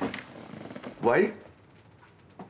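An elderly man speaks briefly into a telephone.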